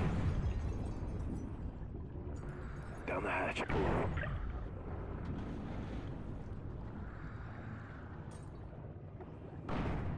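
Air bubbles gurgle and rise underwater.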